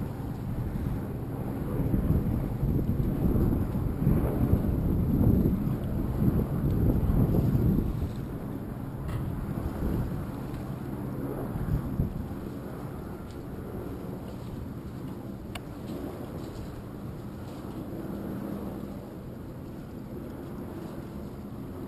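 Small waves lap and splash on the water.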